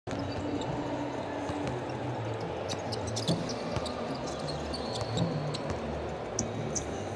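Sneakers squeak sharply on a wooden court.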